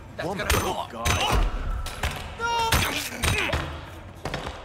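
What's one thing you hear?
A man grunts and cries out in a scuffle.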